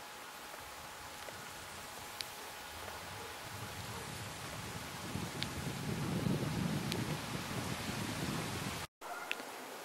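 A runner's footsteps slap on asphalt, coming closer.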